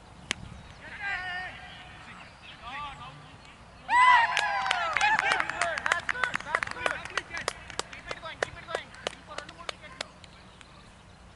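Several men shout and cheer excitedly outdoors.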